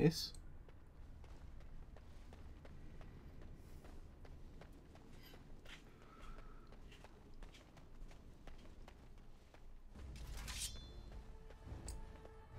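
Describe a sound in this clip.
Footsteps tap softly on a stone floor.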